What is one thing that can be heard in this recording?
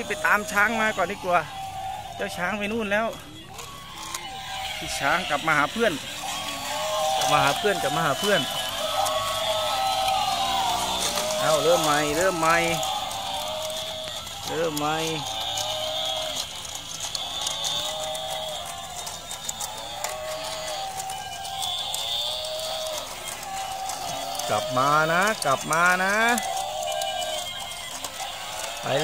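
Small toy motors whir as the toys walk.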